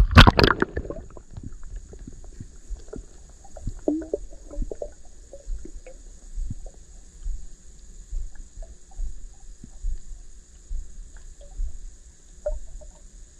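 Faint clicks and muffled bubbling sound underwater.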